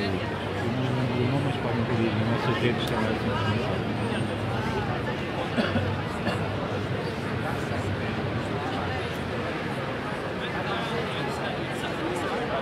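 A large crowd chatters and calls out loudly outdoors.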